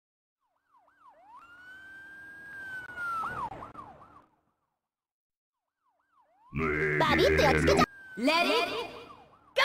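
Electronic swooping tones sweep up and down.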